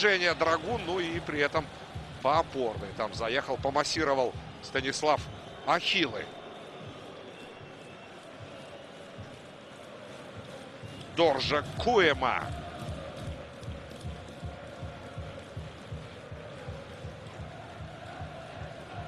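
A large stadium crowd murmurs and chants steadily in the distance.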